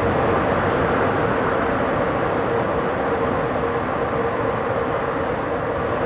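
A train's rumble echoes loudly inside a tunnel.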